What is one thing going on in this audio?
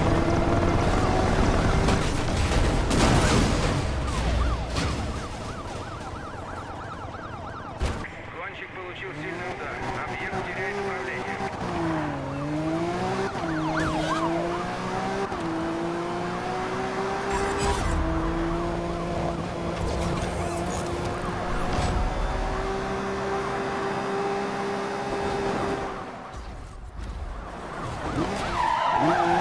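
A sports car engine roars at high speed, its pitch rising and falling with gear changes.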